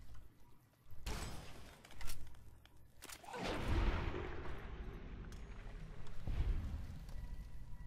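Gunshots ring out loudly, with a rumbling echo after them.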